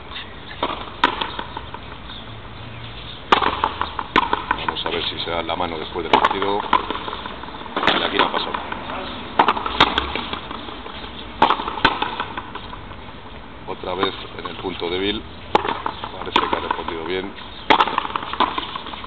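A ball smacks sharply against a wall and echoes across an open court.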